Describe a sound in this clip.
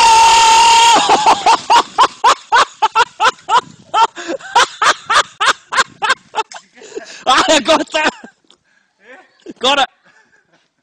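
A man laughs loudly and hard in bursts.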